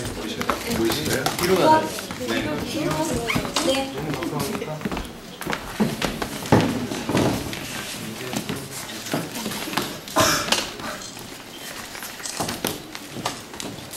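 Several young men and women talk and laugh nearby.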